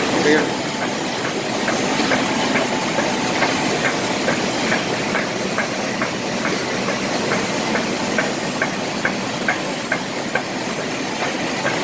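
A printing press feeds sheets with rapid rhythmic clicks.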